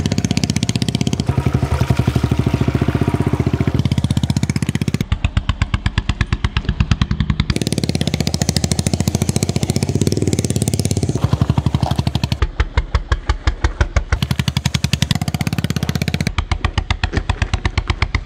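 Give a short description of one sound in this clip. A motorcycle engine thumps steadily close by.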